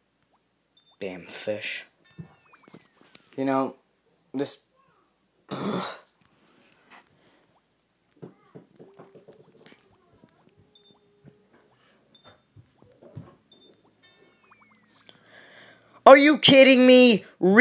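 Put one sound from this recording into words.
A short electronic crash sound plays in a game.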